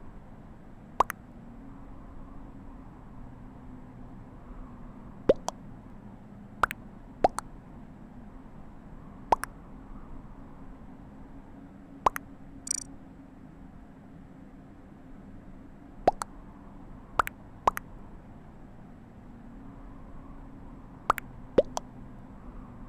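Short electronic pops sound as new chat messages arrive in a game.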